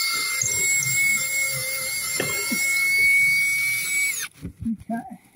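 A cordless drill whines steadily, then stops abruptly.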